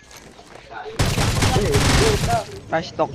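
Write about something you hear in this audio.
Rapid gunshots ring out at close range.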